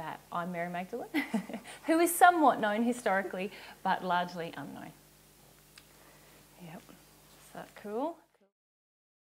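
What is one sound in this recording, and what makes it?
A young woman speaks calmly and warmly close to a microphone.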